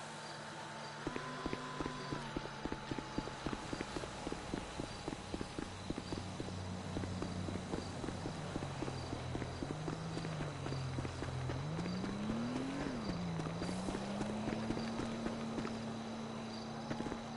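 Footsteps run quickly over pavement and dirt.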